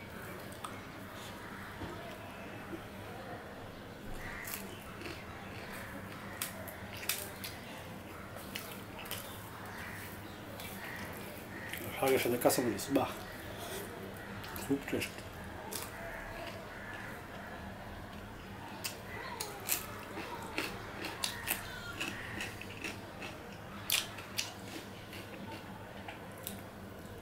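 A man chews food with wet smacking sounds.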